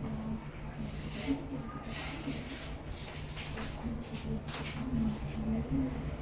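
An eraser rubs across a board in short strokes.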